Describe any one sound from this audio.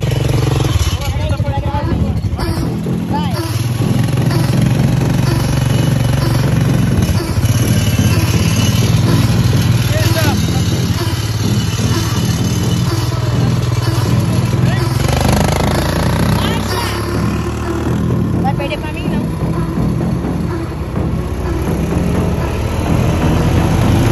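A quad bike engine rumbles steadily while driving on sand.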